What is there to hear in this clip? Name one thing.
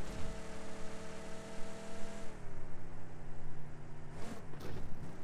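A car engine hums steadily, then drops in pitch as the car slows.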